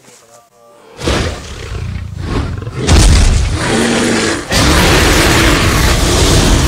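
A fireball bursts and roars loudly.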